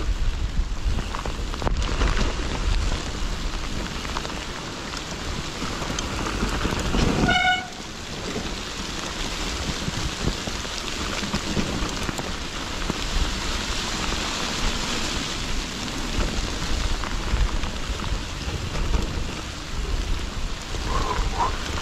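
Bicycle tyres crunch and rustle over dry leaves.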